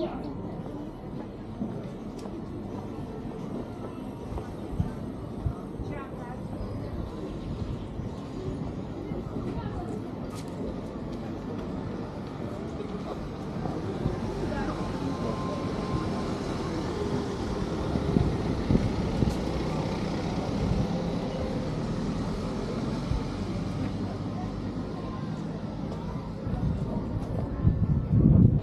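A mixed crowd of men and women murmur nearby in the open air.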